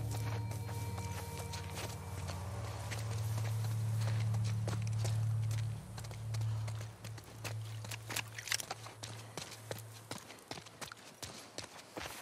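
Footsteps run through tall grass and over wet ground.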